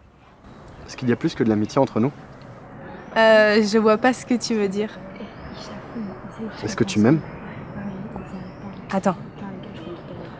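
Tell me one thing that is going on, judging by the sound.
A young man and a young woman talk calmly with each other up close.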